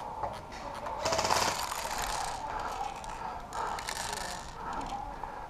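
Wind gusts across the microphone outdoors.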